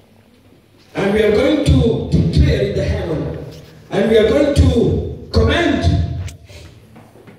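A woman preaches loudly and with fervour through a microphone over loudspeakers in an echoing hall.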